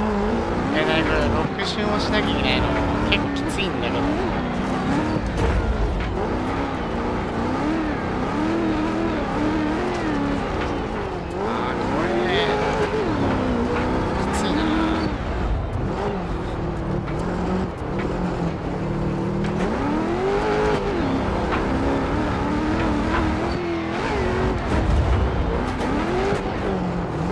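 Tyres crunch and skid over loose dirt.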